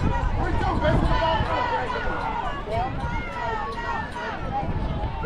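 Several young women's voices chatter and call out nearby, outdoors.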